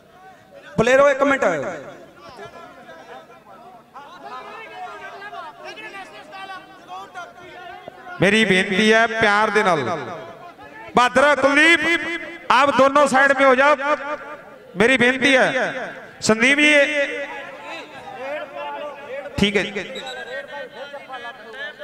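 A man announces loudly over a loudspeaker, heard outdoors.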